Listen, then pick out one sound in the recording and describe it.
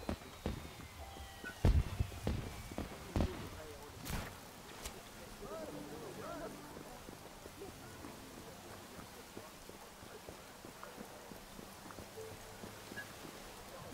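Footsteps run on pavement.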